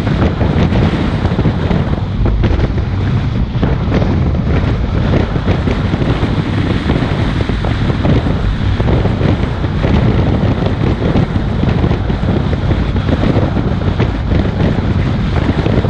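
Wind buffets loudly against the car, roaring and rumbling.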